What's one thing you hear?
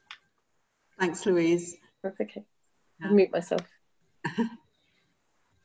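An older woman laughs over an online call.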